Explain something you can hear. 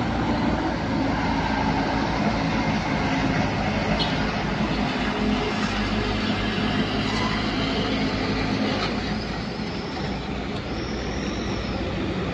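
A bus engine rumbles steadily close by.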